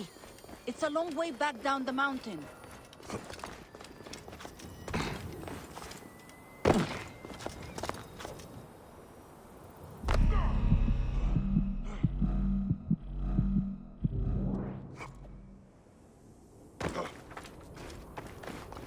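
Footsteps crunch on sand and rock.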